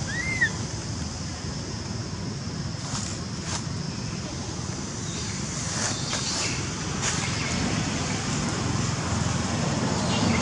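Leaves rustle as an animal moves through dense foliage.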